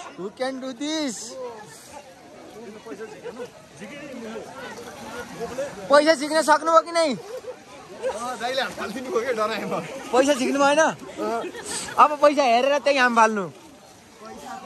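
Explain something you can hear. A young man talks excitedly close by.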